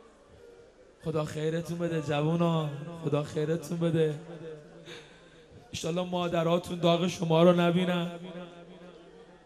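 A young man chants a mournful lament into a microphone, heard through loudspeakers.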